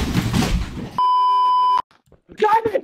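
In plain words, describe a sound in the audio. A steady high test tone beeps.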